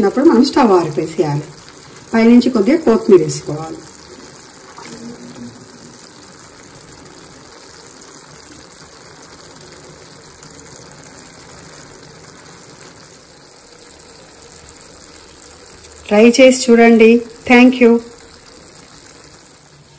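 A thick sauce bubbles gently in a pan.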